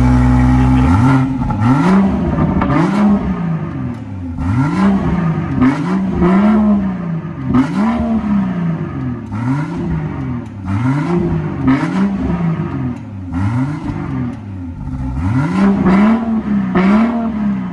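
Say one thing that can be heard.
A car engine revs up and down over and over, the exhaust roaring and popping.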